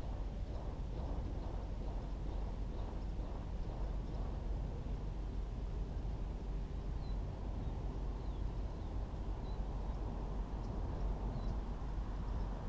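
Wind blows steadily outdoors, rumbling low against the microphone.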